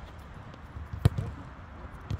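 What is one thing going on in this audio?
A foot kicks a football hard outdoors.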